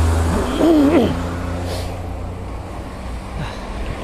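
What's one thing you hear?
An oncoming car passes by.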